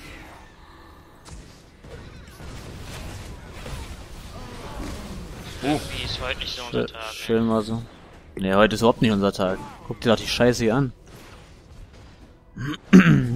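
Game spells crackle and whoosh during a fight.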